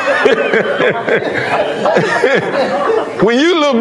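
A middle-aged man laughs.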